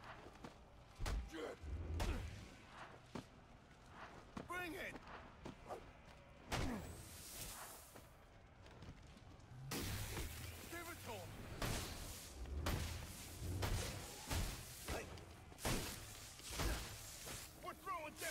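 Men grunt and shout as they fight.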